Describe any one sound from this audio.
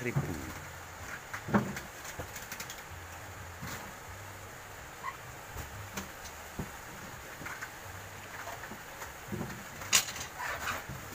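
Plastic sacks rustle and crinkle as they are handled.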